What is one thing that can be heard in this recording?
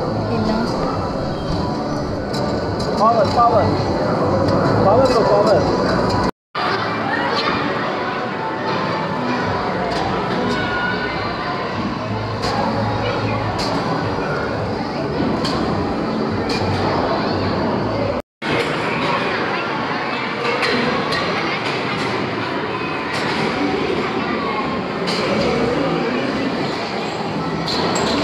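Electronic arcade game music and effects play loudly.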